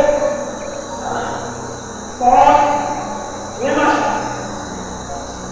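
An elderly man chants slowly into a microphone.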